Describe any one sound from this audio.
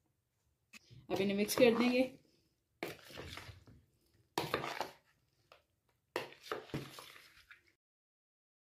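A spoon scrapes and squelches through wet food in a plastic bowl.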